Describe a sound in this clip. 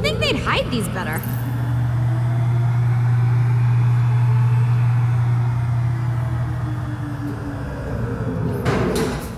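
A lift hums loudly and steadily as it rises.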